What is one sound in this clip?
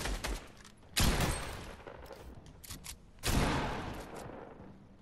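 A shotgun fires with loud, echoing blasts.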